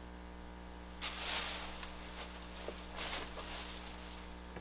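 A plastic sheet rustles and crinkles as it is lifted.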